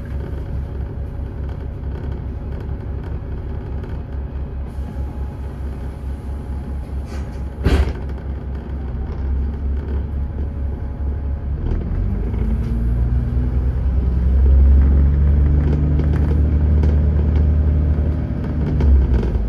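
A bus engine rumbles steadily, growing louder as the bus pulls away.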